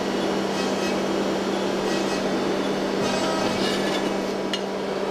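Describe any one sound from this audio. Sheet metal scrapes and clinks against a metal press.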